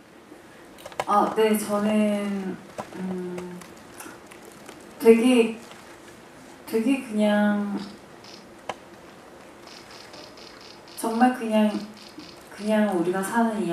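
A young woman speaks softly into a microphone.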